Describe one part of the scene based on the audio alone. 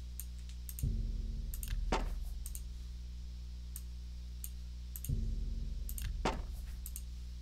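Soft menu clicks sound as items are selected.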